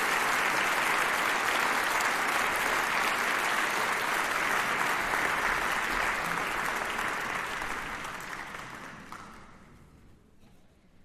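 A large audience applauds in a big hall, then the clapping fades away.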